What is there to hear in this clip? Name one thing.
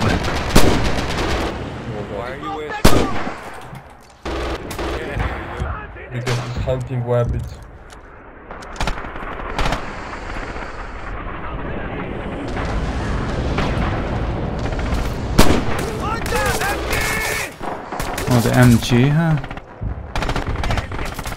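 Gunshots crack loudly several times.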